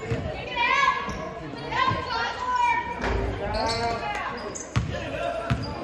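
A basketball thumps as it bounces on the floor.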